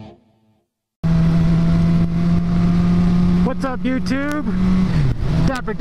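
A motorcycle engine drones steadily at speed, its pitch dropping briefly near the end.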